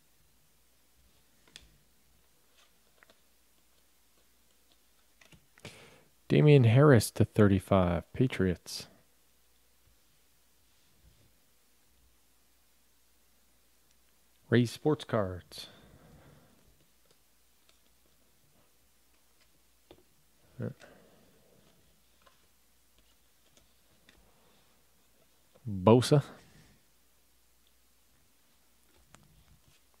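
Trading cards rustle and flick softly as they are sorted by hand.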